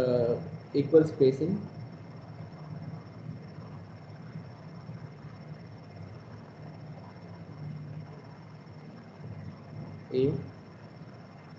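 A man speaks calmly through an online call, in short bursts.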